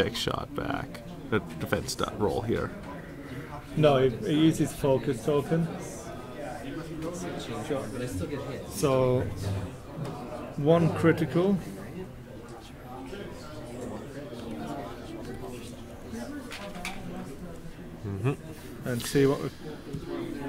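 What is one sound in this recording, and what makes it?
Plastic game pieces click on a tabletop.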